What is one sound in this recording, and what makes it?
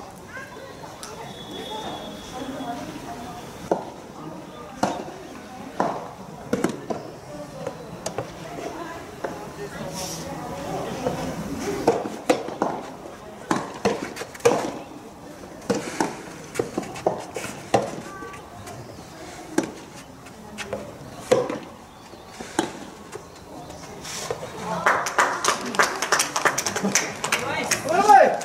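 Tennis shoes scuff and patter on the court.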